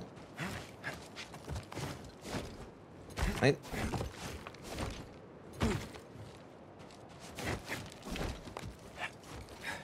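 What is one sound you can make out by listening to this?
Hands and boots scrape and thud on rock during a climb.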